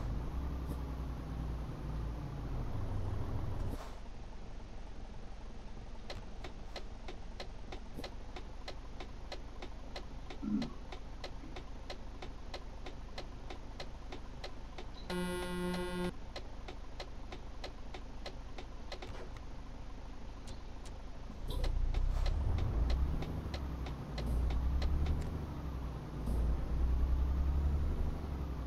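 A truck engine hums and rumbles steadily, growing louder at times.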